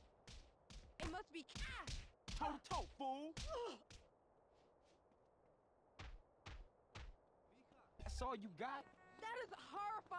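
A man cries out in pain.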